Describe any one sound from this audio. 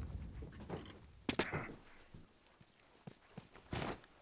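Footsteps patter on the ground.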